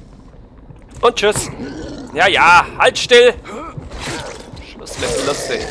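A knife stabs into flesh with wet thuds.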